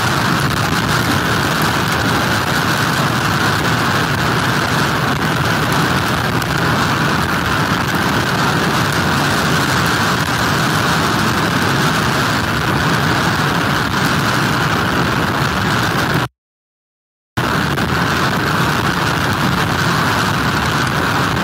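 Heavy surf crashes and churns.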